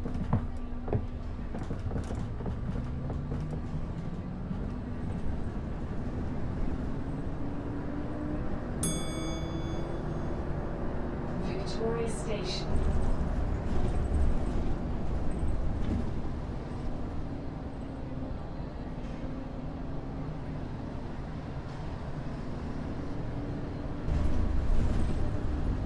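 A bus engine hums and drones steadily, rising and falling in pitch as the bus drives.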